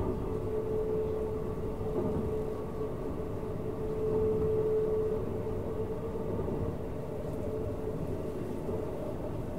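A train rumbles along the tracks with a steady low hum.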